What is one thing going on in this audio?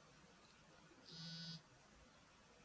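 A phone buzzes briefly as it vibrates.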